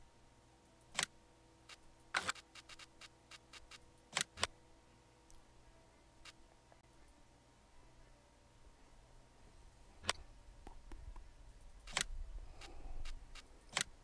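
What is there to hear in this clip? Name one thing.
Menu buttons click sharply, one at a time.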